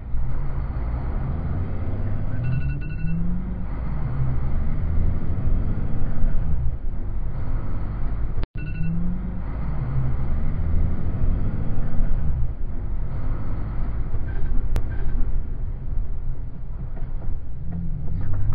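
A heavy truck's engine rumbles as it accelerates.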